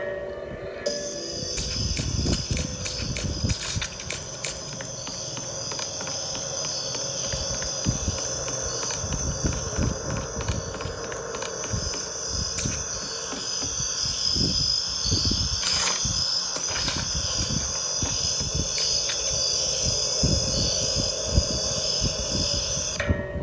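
Game footsteps thud steadily from a tablet's small speaker.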